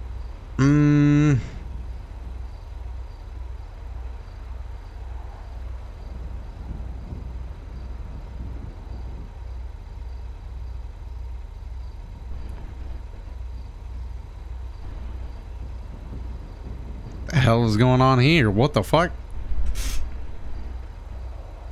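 A van engine idles with a low, steady rumble.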